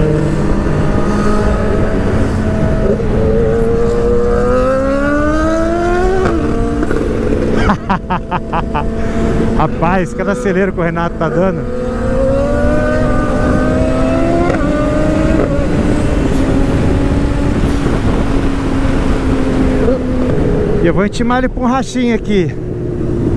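A motorcycle engine revs up and shifts through gears close by.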